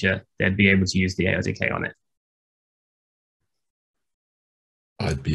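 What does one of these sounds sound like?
A young man speaks calmly through a microphone, as if on an online call.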